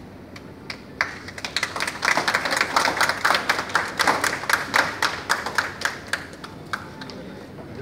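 A crowd claps their hands in applause.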